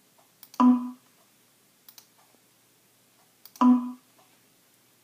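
A computer plays a short alert chime.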